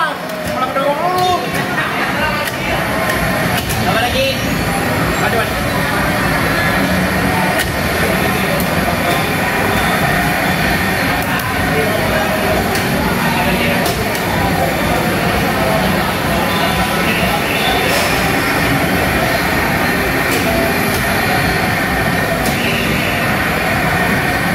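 Background music plays loudly from the arcade machines.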